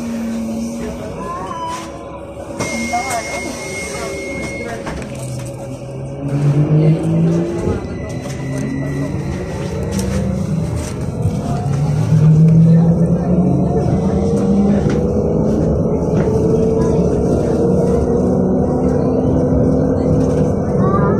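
A bus motor hums and whines, rising in pitch as the bus picks up speed.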